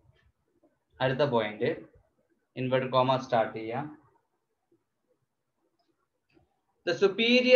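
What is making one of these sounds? A man speaks calmly and closely in short phrases with pauses.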